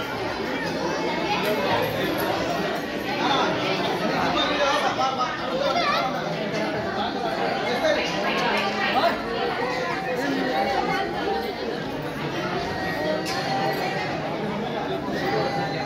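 A crowd of women and children chatter all around, close by.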